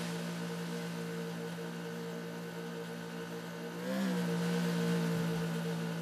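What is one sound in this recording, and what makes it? A motorboat engine drones steadily, its pitch shifting briefly.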